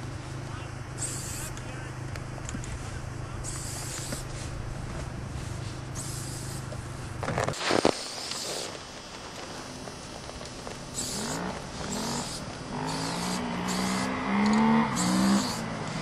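A spray can hisses in short bursts outdoors.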